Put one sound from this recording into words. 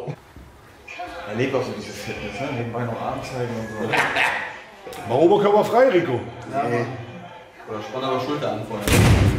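A young man laughs and speaks excitedly.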